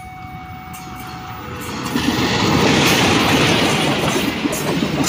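A diesel locomotive roars past.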